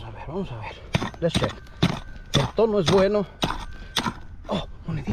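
A pick strikes the dry ground with sharp knocks.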